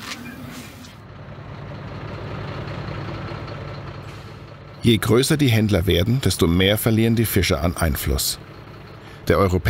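A truck engine rumbles as the truck rolls past nearby.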